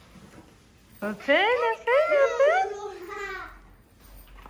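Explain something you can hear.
A young girl speaks excitedly, close by.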